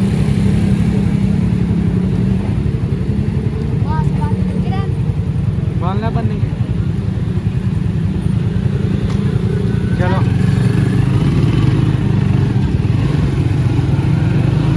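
A motorcycle engine runs with a steady low rumble.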